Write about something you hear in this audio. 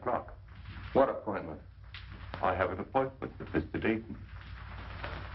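A man speaks calmly and briefly, close by.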